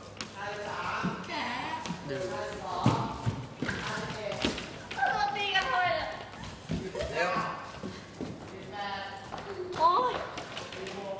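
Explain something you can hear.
Young women talk and shout excitedly, close by.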